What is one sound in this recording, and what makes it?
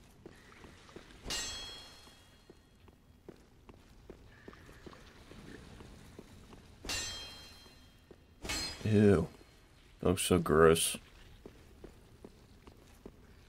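Armoured footsteps clank softly on stone.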